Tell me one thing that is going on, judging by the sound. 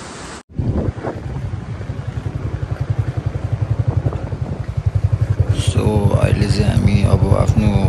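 A motorcycle engine thumps steadily while riding.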